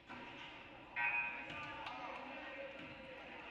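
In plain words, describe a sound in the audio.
A crowd cheers loudly.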